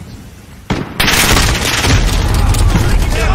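A blast booms with a deep rumble.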